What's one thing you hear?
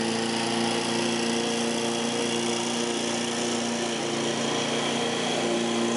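A lawn mower engine drones steadily nearby.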